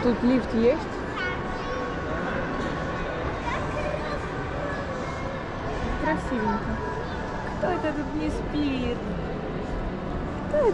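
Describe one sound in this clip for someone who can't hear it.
Many voices murmur and echo in a large indoor hall.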